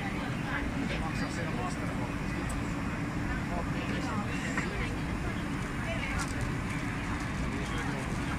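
City traffic rumbles steadily far below.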